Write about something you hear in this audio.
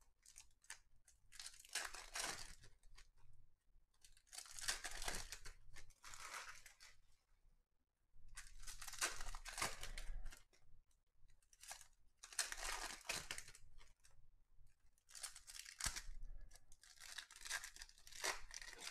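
Foil wrappers crinkle and tear as card packs are ripped open.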